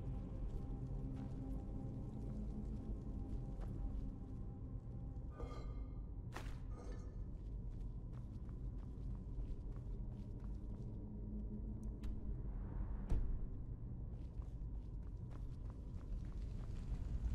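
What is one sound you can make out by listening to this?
Footsteps scuff and tap on a stone floor.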